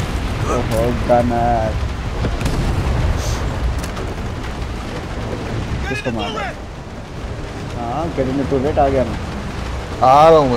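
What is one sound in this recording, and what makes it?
A boat motor rumbles steadily over the water.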